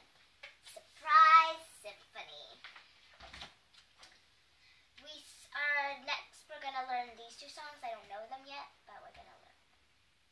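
A young girl sings nearby.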